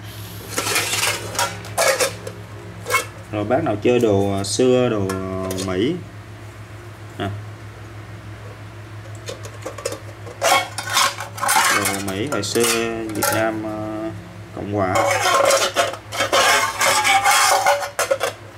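A metal mess tin clinks and scrapes as hands handle it close by.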